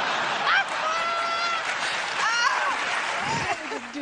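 A middle-aged woman laughs heartily.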